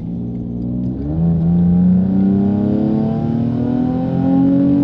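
A car engine revs, rising steadily in pitch.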